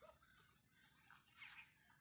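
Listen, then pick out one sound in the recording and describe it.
A man casts a fishing line over water.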